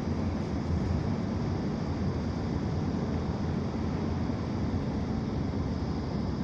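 Tyres roll on the road with a steady low rumble.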